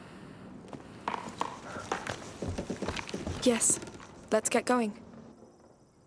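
A young woman speaks with effort, close by.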